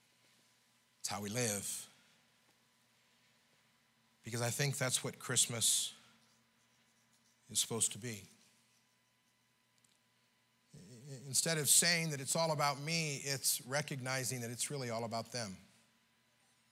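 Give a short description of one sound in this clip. An elderly man preaches with feeling through a microphone, in bursts with pauses.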